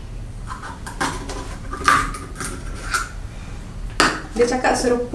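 A plastic bottle cap clicks and crackles.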